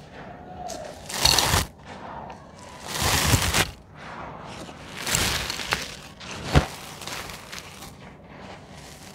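A hand sweeps dusty powder across the ground.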